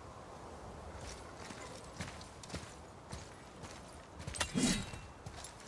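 Heavy footsteps crunch on grass and earth.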